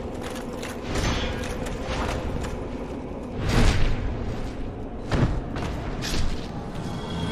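Sword blows strike armour with heavy metallic clangs.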